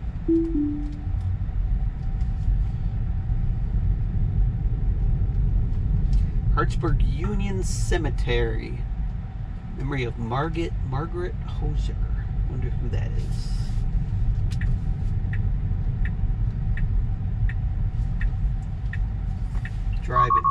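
Tyres rumble steadily on a rough road from inside a moving car.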